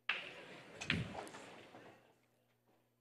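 A pool ball drops into a pocket.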